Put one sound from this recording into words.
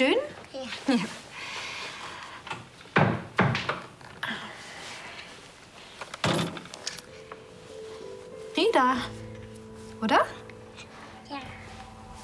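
A small child giggles.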